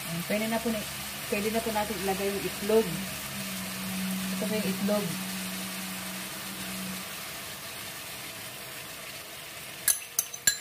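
Food sizzles in a hot frying pan.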